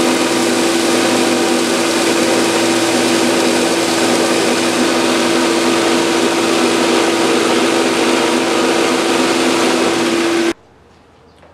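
A woodworking machine runs with a loud, steady whine.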